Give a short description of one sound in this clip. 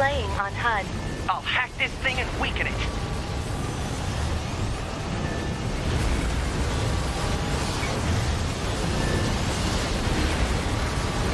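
Gunfire and explosions rumble loudly throughout.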